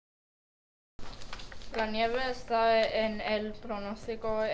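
A child reads out aloud, close by.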